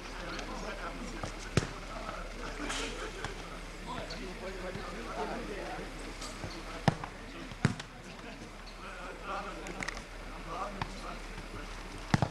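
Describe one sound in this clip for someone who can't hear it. Men call out to each other outdoors.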